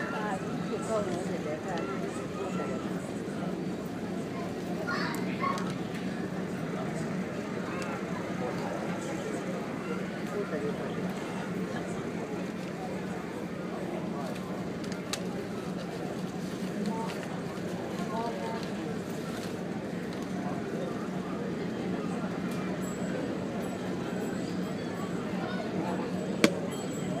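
Waves wash against a moving ship's hull.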